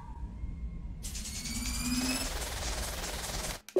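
A steady electric crackle buzzes.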